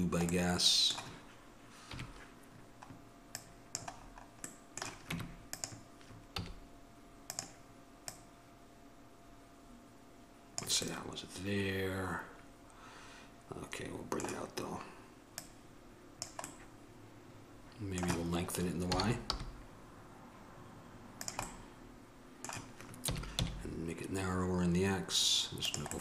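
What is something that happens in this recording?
Computer keys and a mouse click now and then.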